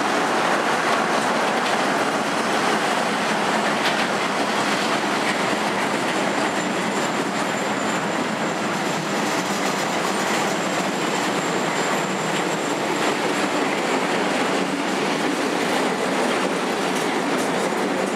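A long freight train rumbles steadily past close by.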